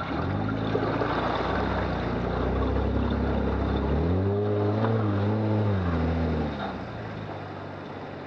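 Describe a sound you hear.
Tyres squelch and splash through wet mud.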